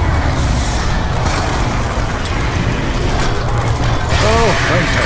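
A gun fires rapidly.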